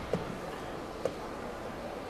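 A chess clock button clicks sharply once.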